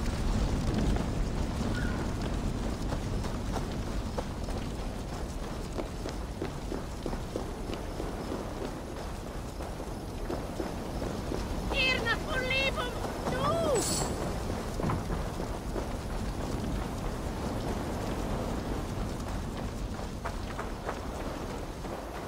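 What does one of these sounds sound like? Footsteps run over gravel and grass.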